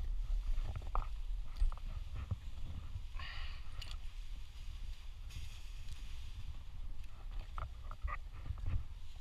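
Climbing gear clinks against a rope.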